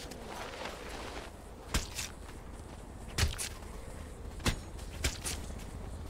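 Fists thud in punches during a scuffle.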